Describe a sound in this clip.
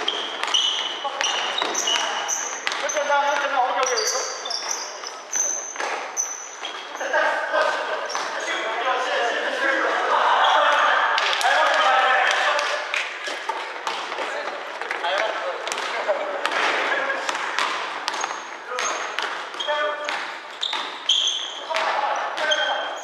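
Young men shout and call out to each other, echoing in a large hall.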